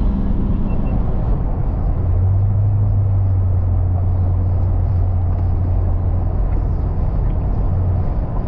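Wind rushes loudly through an open car window.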